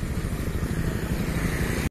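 A motorbike engine hums as it rides past on a road.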